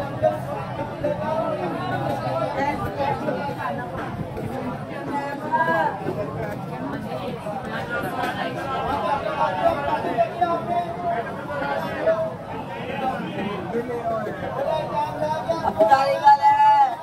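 A crowd chatters all around in a busy, noisy street.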